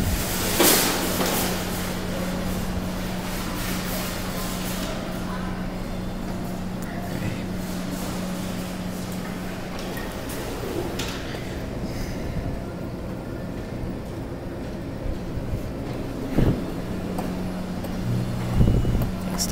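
An arcade machine hums steadily.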